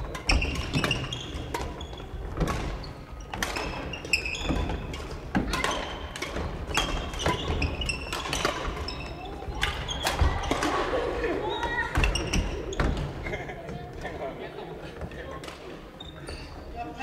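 Shoes squeak and thud on a wooden floor.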